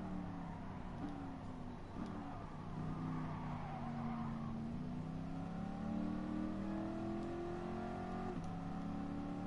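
A car engine's pitch jumps sharply with each gear change.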